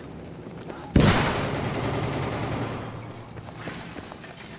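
An explosion booms loudly and rumbles away.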